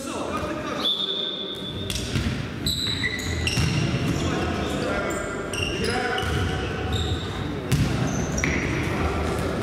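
A ball thumps against the floor as it is kicked.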